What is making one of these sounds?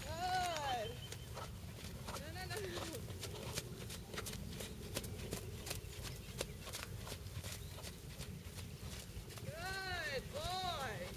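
A horse's hooves thud rhythmically on soft sand.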